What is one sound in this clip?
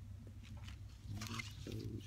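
Curly ribbon bows rustle as a hand lifts them.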